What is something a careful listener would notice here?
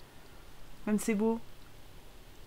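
A young woman speaks briefly into a close microphone with animation.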